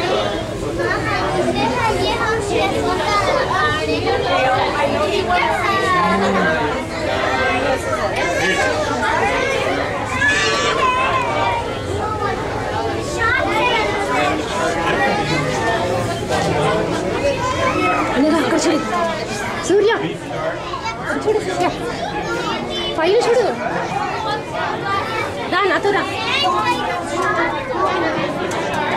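A crowd of adults and children chatters loudly nearby in an echoing indoor hall.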